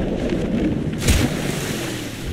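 A body splashes hard into water.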